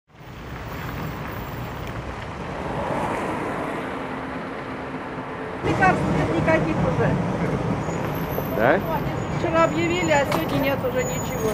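Traffic rumbles steadily outdoors.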